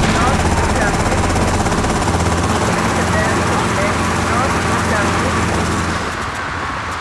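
A motorcycle engine roars steadily at speed.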